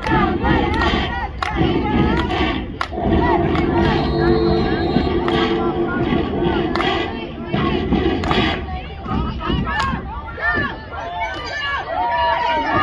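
A crowd of children and adults shout and cheer outdoors.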